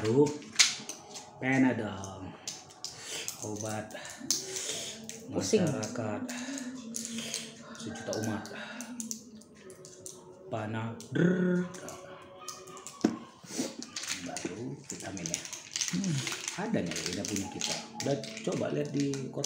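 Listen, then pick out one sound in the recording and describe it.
Foil crinkles as a man's fingers tear open a packet.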